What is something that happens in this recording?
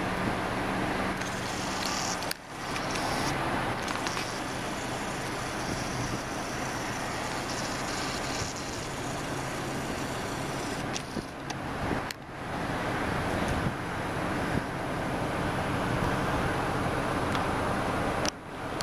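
A car drives along a road with a steady roar of tyres and wind.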